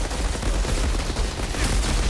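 Flames roar in a burst.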